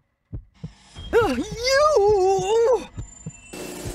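An old woman cackles loudly with glee.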